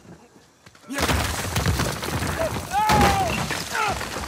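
Wooden planks crack and crash down with falling debris.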